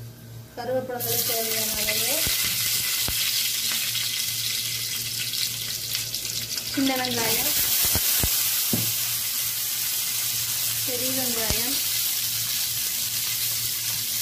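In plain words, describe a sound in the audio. Hot oil sizzles loudly in a pan.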